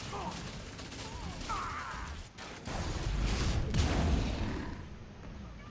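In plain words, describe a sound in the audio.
Video game gunshots fire in quick bursts.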